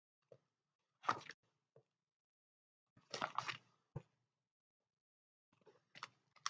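Plastic binder pages rustle and flap as they are turned.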